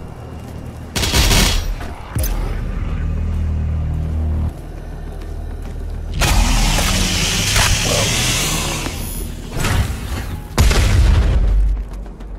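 A heavy shotgun fires loud booming blasts.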